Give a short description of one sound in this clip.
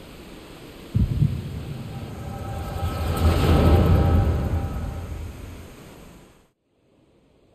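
A deep rumbling blast booms suddenly, swells and then fades away.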